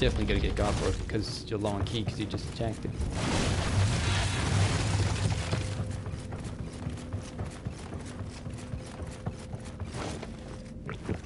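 Footsteps run across creaking wooden floorboards.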